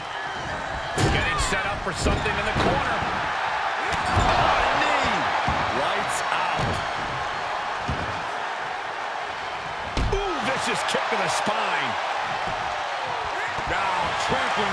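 Heavy thuds of bodies slam onto a mat.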